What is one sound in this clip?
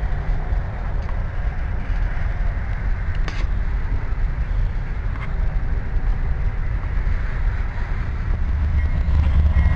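A freight train rumbles along the tracks.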